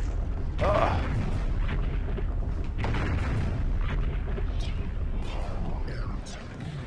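A giant mechanical creature's legs thud and clank heavily on the floor.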